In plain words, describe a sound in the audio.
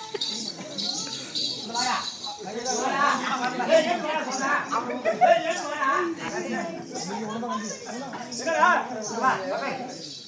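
A man sings loudly through a loudspeaker, heard outdoors.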